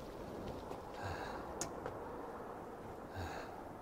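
Footsteps thud slowly on a wet road.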